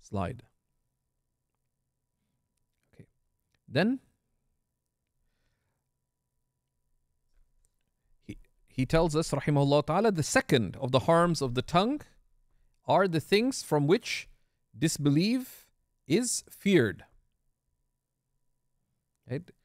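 A man recites in a melodic chanting voice into a close microphone, with long pauses.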